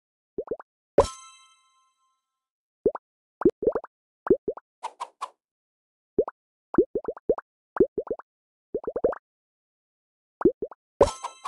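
A bright chime rings out and fades.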